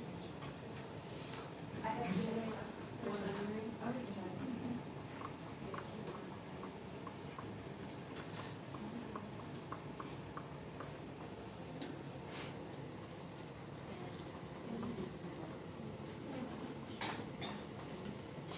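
A young woman speaks to a group, close by.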